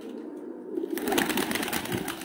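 Pigeons flap their wings as they take off.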